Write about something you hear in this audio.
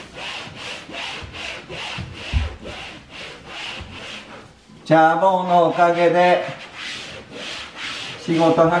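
A dog pants quickly and rhythmically close by.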